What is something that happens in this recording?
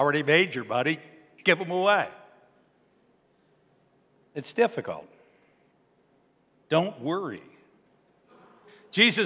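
A middle-aged man speaks calmly into a microphone in a room with a slight echo, pausing between phrases.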